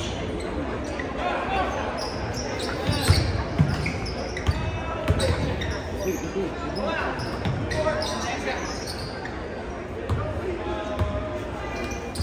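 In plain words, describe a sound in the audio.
A crowd of spectators chatters and calls out in the background.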